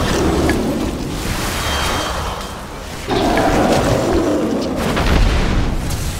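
Magic spells whoosh and crackle in a battle.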